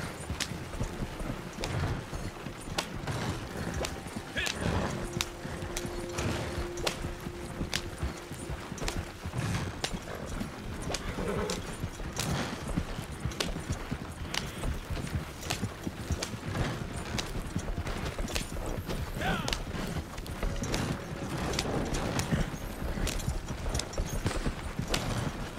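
A horse-drawn wagon rattles and creaks along a dirt track.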